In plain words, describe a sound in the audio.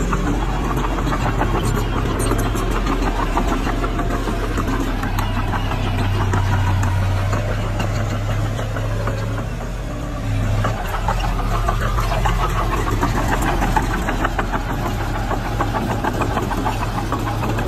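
A bulldozer engine rumbles steadily nearby.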